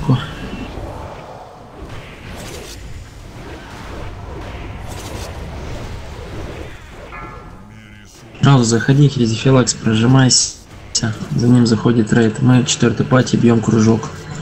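Blasts of fire roar and crackle in a battle.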